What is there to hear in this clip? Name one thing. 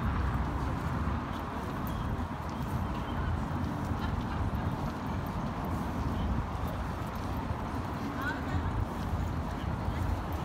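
Pedestrians' footsteps patter on stone pavement.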